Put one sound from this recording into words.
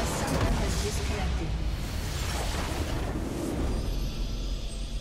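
A loud explosion rumbles and crackles.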